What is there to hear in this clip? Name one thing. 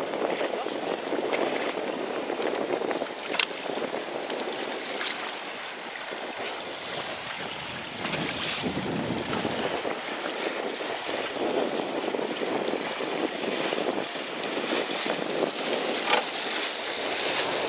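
Choppy water splashes and laps steadily all around.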